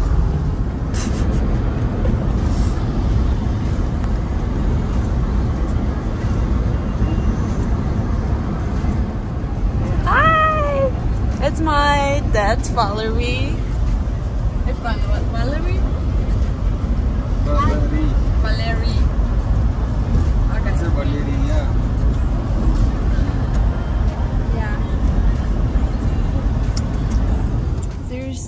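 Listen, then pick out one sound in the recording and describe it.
A car's tyres and engine rumble steadily on the road.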